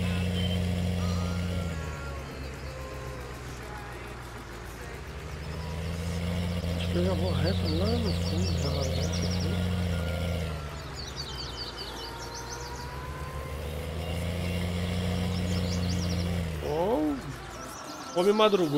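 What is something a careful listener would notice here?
A tractor engine hums steadily as it drives along.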